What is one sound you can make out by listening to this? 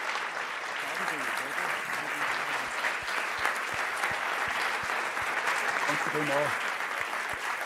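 A man speaks briefly through a microphone in a large echoing hall.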